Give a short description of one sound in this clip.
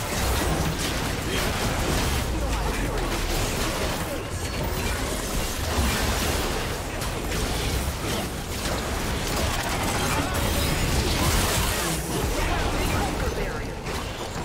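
Magic blasts and weapon hits crackle and burst in a busy battle.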